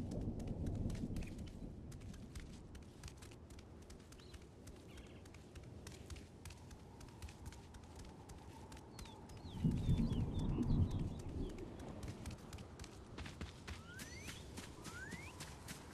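Quick footsteps patter on stone as a figure runs.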